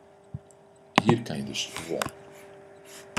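A man speaks briefly and calmly into a close computer microphone.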